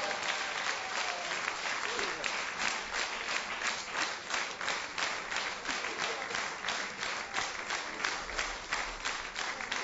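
Dancers' heels stamp in a quick rhythm on a wooden stage.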